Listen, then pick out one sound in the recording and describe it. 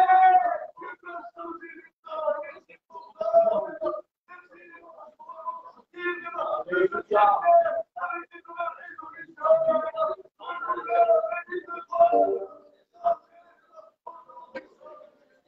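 A man sings through a microphone and loudspeakers in an echoing hall.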